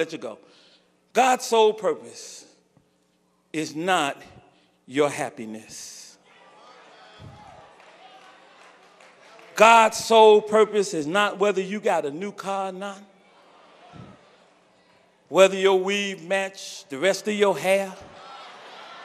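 A man preaches with feeling into a microphone, in bursts separated by pauses.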